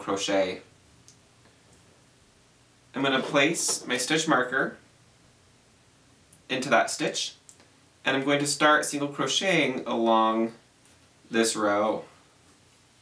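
A young man speaks calmly into a nearby microphone, in short bursts.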